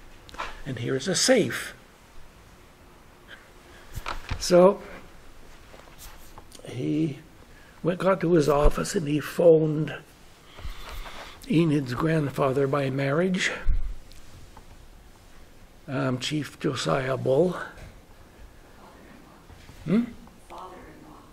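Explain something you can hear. An elderly man speaks slowly in bursts, close to a microphone, with pauses between phrases.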